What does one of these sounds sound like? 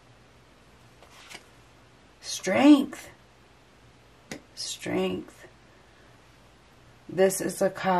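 Playing cards are laid down softly on a cloth-covered table.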